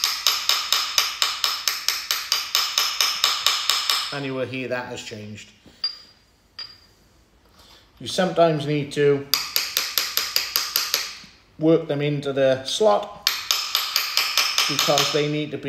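A hammer taps rapidly on metal.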